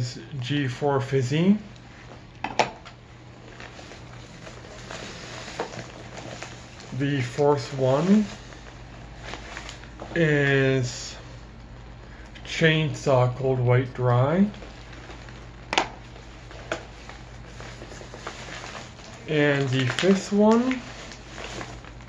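A man talks calmly and close by, in short bursts with pauses.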